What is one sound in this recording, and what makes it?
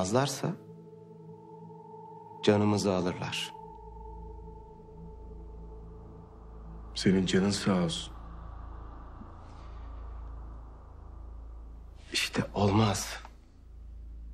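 Men speak in short, tense lines close by.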